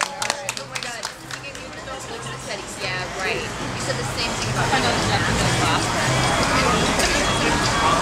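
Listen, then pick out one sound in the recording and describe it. Men and women chat nearby.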